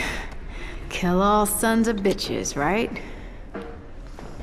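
A young woman speaks casually and close by.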